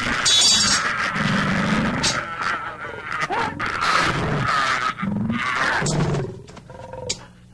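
Two men grunt and gasp as they struggle close by.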